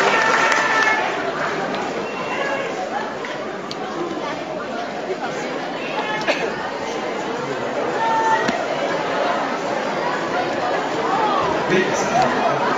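A crowd of children murmurs and chatters softly.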